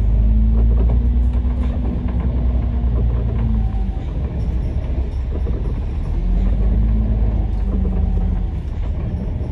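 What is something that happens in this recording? An engine hums low nearby, rising and falling.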